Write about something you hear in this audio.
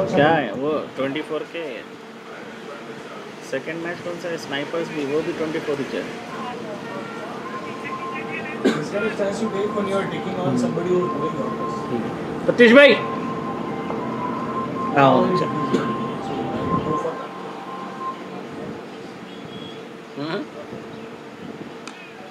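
Men call out and talk across an open field.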